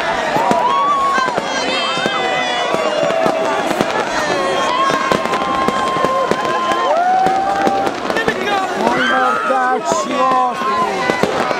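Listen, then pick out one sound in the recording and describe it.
A large crowd screams and cheers loudly close by.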